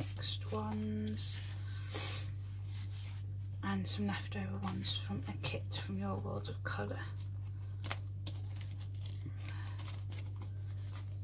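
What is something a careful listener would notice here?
Paper sheets rustle and flap as they are handled.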